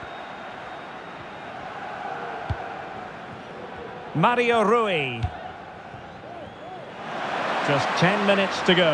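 A large crowd roars steadily in a big open stadium.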